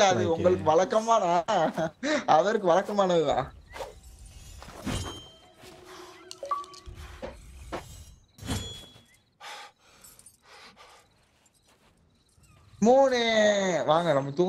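A young man talks with animation into a microphone, heard close.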